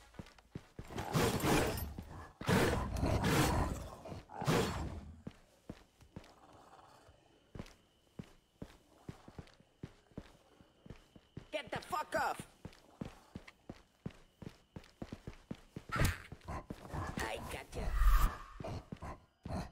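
An elderly man talks with animation into a close microphone.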